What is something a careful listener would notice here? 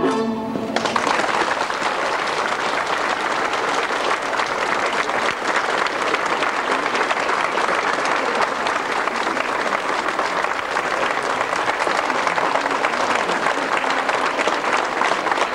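A crowd claps steadily and loudly.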